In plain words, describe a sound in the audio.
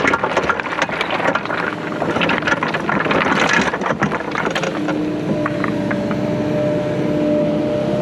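A heavy machine's diesel engine rumbles steadily nearby.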